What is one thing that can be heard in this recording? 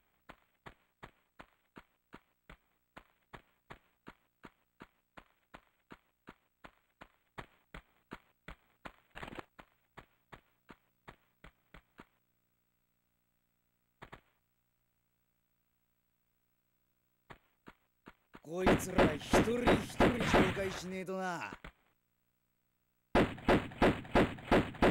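Quick footsteps patter steadily on stone.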